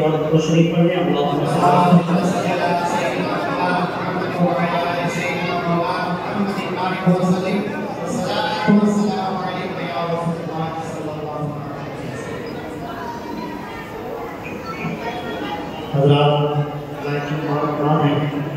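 A young man sings a devotional chant into a microphone, heard through loudspeakers in a reverberant space.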